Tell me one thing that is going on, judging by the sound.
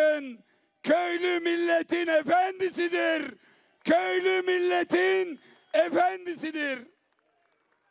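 A man shouts forcefully into a microphone through loudspeakers.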